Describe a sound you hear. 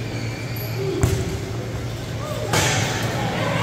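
A ball thumps off a wheelchair's guard.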